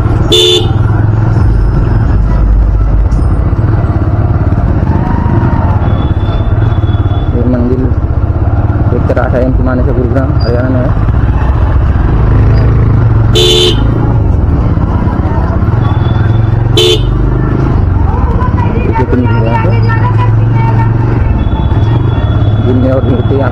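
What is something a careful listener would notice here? People talk faintly in a busy street.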